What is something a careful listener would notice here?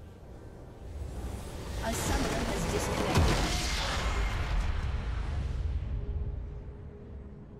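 Video game spell effects whoosh and crackle loudly, then fade.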